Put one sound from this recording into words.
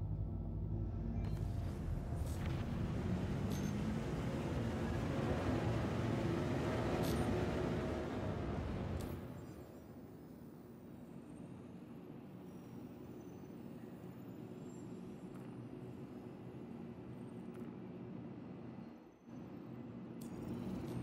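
A spaceship engine rumbles loudly, then drops to a low steady hum.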